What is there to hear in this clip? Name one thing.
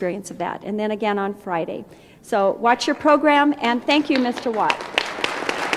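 A woman speaks warmly into a microphone, amplified in a large hall.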